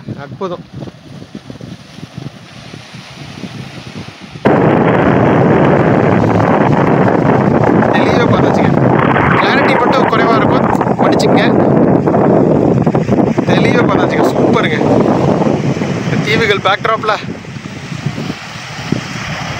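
Small waves wash gently onto a beach.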